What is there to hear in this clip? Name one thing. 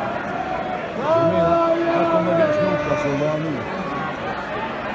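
Fans in a stadium crowd chant and sing together.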